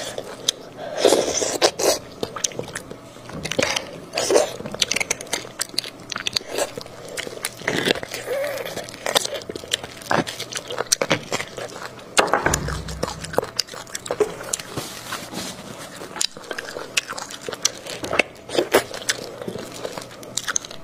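A woman chews and slurps food close to a microphone.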